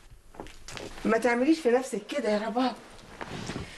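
A woman speaks with emotion nearby.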